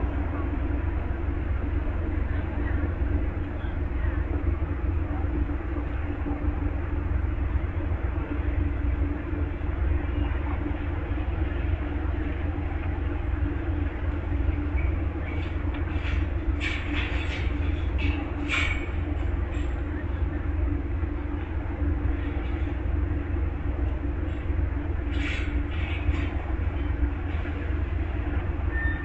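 A standing train's engine idles with a steady low hum.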